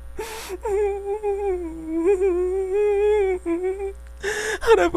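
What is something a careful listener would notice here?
A young woman sings softly.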